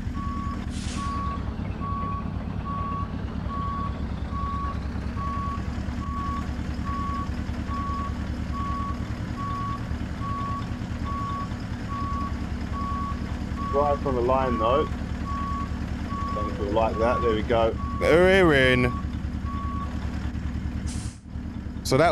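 A truck engine rumbles steadily at idle.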